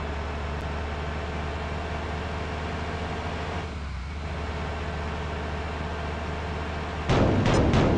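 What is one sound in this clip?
A bus engine drones steadily at speed.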